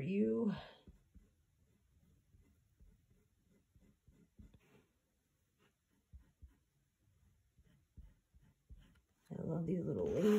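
Fingers softly rub and press on a wooden frame.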